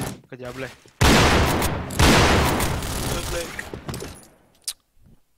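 A rifle shot booms in a game.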